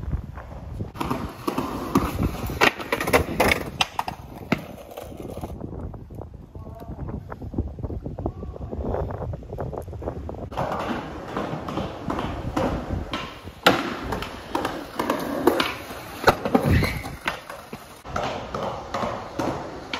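Skateboard wheels roll on concrete.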